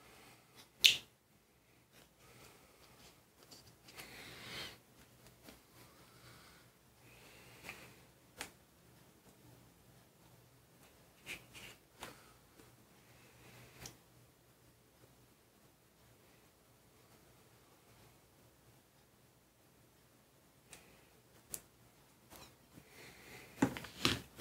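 Paint tubes clack as they are set down on a table.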